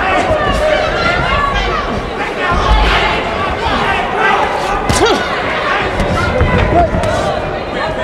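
Punches thud against bodies.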